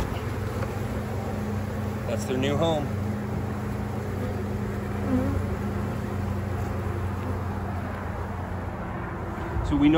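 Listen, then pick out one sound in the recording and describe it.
Honeybees buzz close by over an open hive.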